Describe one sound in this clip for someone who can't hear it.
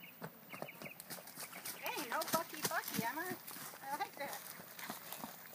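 A woman speaks calmly nearby, outdoors.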